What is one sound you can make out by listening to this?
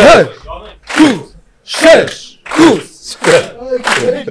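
A man shouts excitedly through a microphone.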